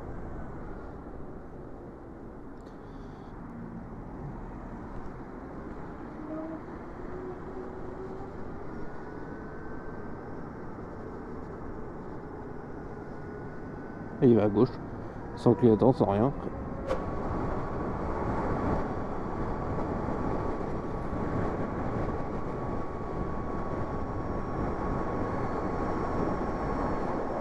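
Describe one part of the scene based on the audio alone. A motorcycle motor whines steadily while riding.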